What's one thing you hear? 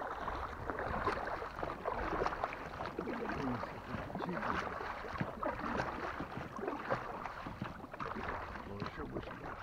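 Water splashes and laps against a boat's hull.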